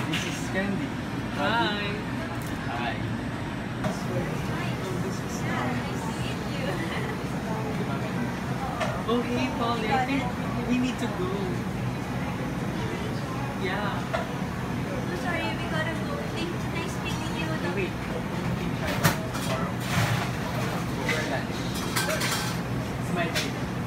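Young men and women talk with each other up close.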